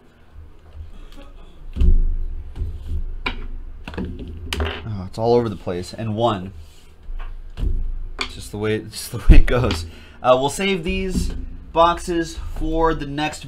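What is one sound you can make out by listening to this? Cardboard boxes knock and slide on a table.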